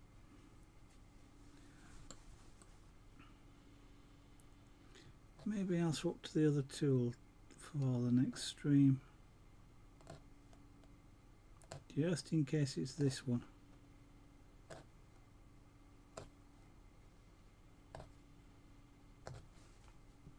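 A punch needle taps softly as it pushes thread through stretched cloth.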